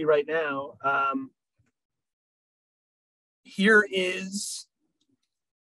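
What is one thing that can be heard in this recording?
A man speaks calmly, heard through an online call.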